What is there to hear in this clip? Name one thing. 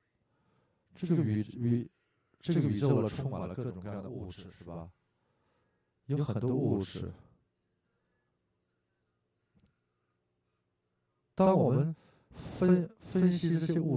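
An older man speaks with animation into a handheld microphone.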